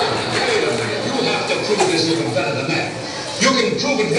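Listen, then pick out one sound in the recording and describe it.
A crowd of women laugh and chatter nearby.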